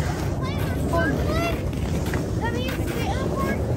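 A young child chatters excitedly close by.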